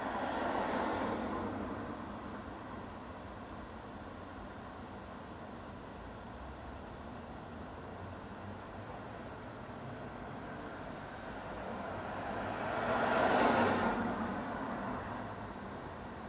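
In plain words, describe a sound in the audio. A car drives past close by and fades into the distance.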